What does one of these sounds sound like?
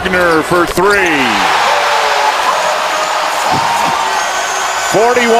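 A large crowd cheers loudly.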